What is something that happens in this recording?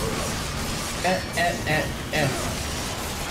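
A young man speaks into a headset microphone with animation.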